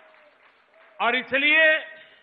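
A man speaks loudly over a loudspeaker.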